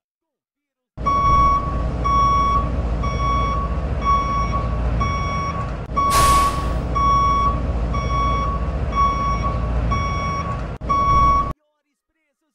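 A truck's reversing alarm beeps at an even pace.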